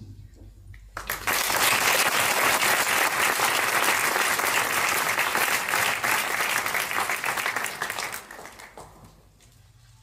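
An audience applauds loudly in a large echoing hall, then the clapping fades out.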